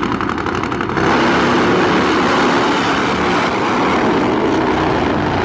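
Drag motorcycles race off with a loud, rising roar.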